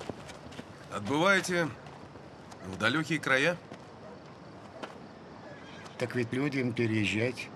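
An elderly man speaks in a low, grave voice close by.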